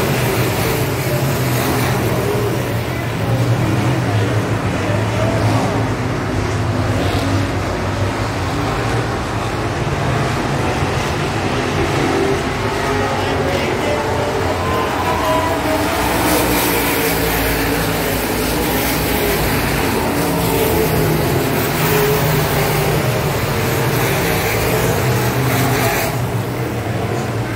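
Race car engines roar loudly as the cars speed around a dirt track.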